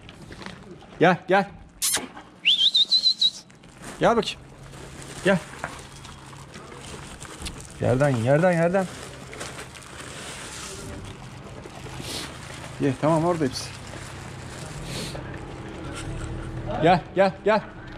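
Dogs whine and yelp in short bursts.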